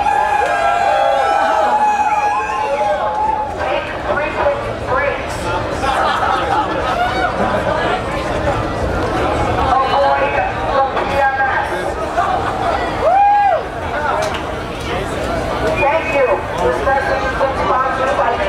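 A crowd of young people chatters and cheers.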